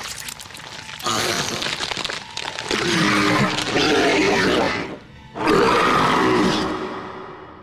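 A monster roars loudly and growls.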